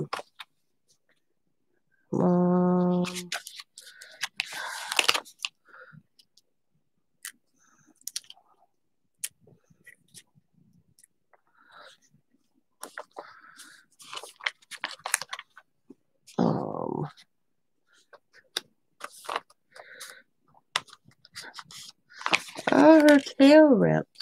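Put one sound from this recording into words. A plastic stencil sheet rustles and crinkles as it is handled.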